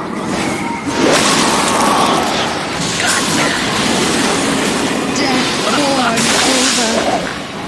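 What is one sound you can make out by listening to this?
Magic spells whoosh and blast in a noisy fight.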